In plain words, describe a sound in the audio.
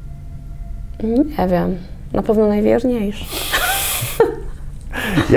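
A young woman speaks calmly into a close microphone.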